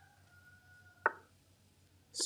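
A chess piece clicks as it is moved.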